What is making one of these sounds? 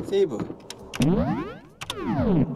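A video game menu opens with a sweeping whoosh.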